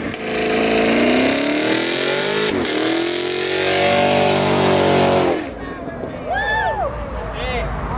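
Tyres screech as they spin on pavement.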